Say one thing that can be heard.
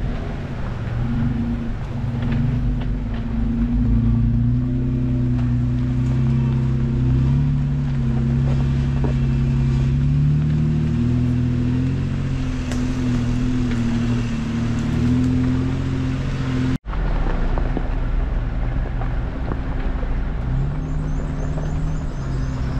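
A vehicle engine rumbles steadily up close.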